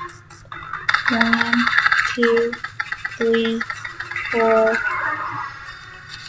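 A video game laser weapon zaps rapidly.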